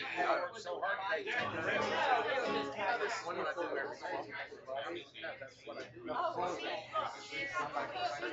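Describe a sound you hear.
Two acoustic guitars are strummed together.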